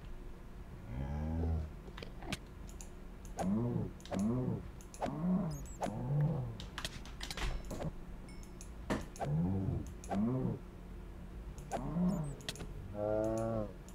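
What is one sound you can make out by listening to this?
A beast lets out deep, repeated groaning bellows.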